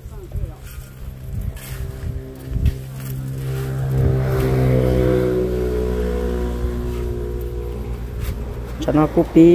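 A motorcycle engine hums as it passes by.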